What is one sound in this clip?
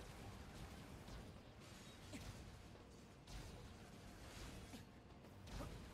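Energy shots fire in quick bursts.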